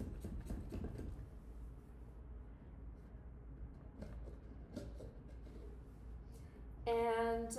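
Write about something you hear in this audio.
A hand tool scrapes and rasps against a block of plaster.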